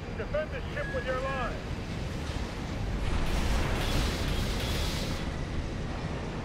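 Rocket thrusters roar in bursts.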